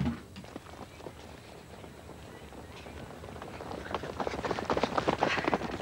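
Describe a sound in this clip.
Runners' feet patter on a track.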